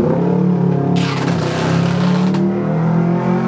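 Packing tape rips off a roll with a loud screech.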